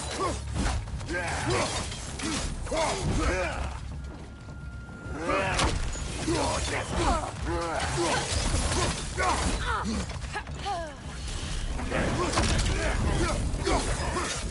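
Fire bursts with a whooshing roar.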